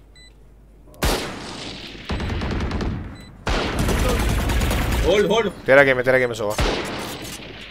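Rapid gunfire rattles from a rifle.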